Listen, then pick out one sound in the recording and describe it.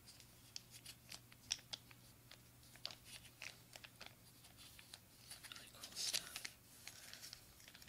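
A plastic sachet crinkles in fingers.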